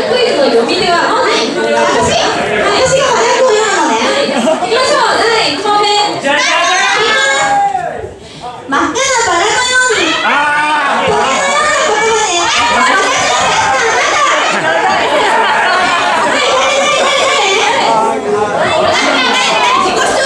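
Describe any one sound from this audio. Young women talk and call out with animation through microphones over loudspeakers.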